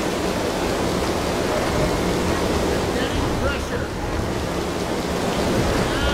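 Water gushes and splashes heavily from large pipes.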